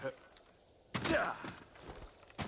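Feet land with a heavy thud on the ground.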